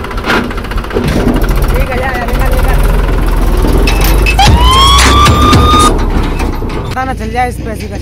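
A tractor engine rumbles close by and drives off.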